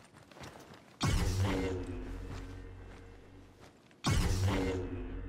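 A lightsaber ignites with a sharp crackling surge.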